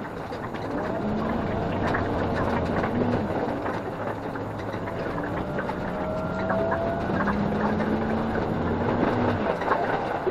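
A train's motor whines, rising and falling in pitch.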